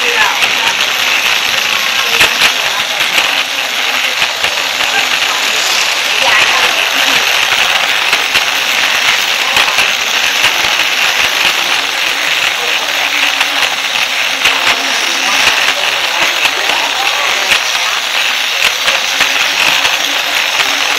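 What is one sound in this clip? Plastic wheels rattle over toy track joints.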